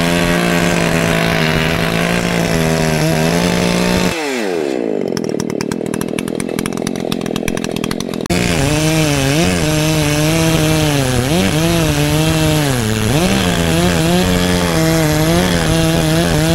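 A chainsaw roars at full throttle, its pitch dipping as it bites into wood.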